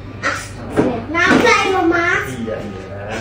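A young child calls out with excitement nearby.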